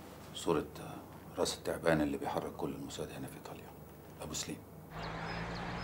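A man speaks in a low, tense voice close by.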